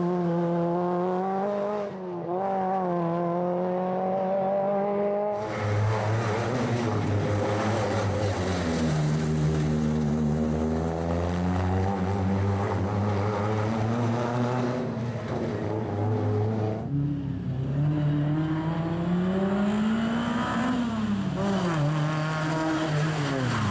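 A rally car engine revs hard and roars past, rising and falling in pitch.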